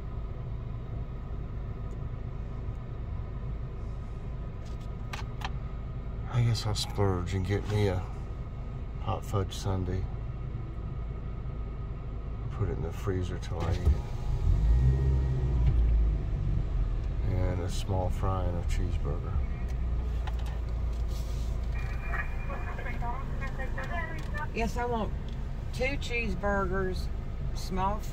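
A car engine idles and hums low and steady, heard from inside the car.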